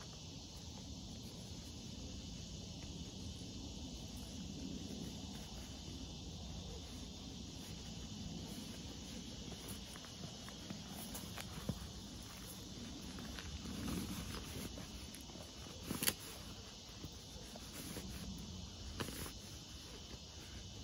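Fabric rustles as a sleeping bag is rolled up and stuffed into a sack.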